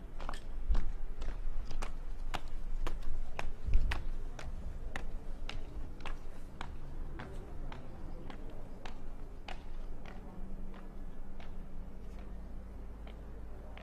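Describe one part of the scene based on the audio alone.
Footsteps tap on paving as a woman walks away.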